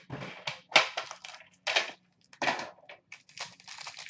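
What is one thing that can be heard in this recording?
Hands open a tin box with metal clicks.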